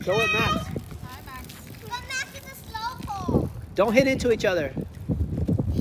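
A small bicycle's tyres roll over concrete.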